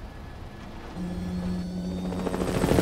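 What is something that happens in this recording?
A helicopter's rotors thump and hum as it flies by.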